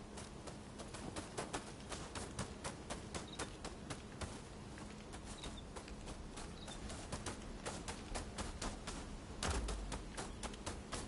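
Footsteps crunch steadily over leaves and gravel.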